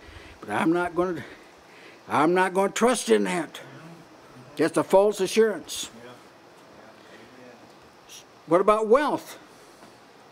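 An elderly man preaches emphatically through a microphone, in short bursts with pauses.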